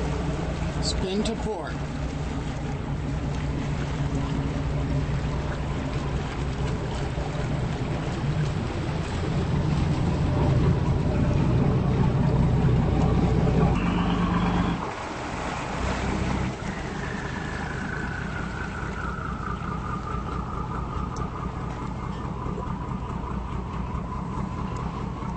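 A boat engine rumbles low and steadily nearby.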